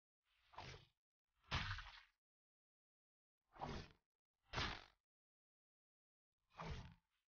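A sword sound effect whooshes in short bursts, over and over.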